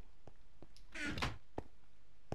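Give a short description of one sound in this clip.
A wooden chest lid creaks shut.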